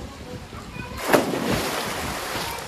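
A person dives into a pool with a loud splash.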